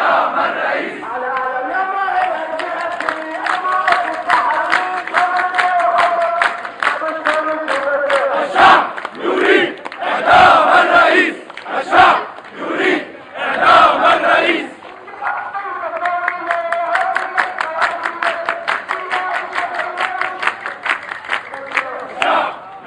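A man leads the chant, shouting.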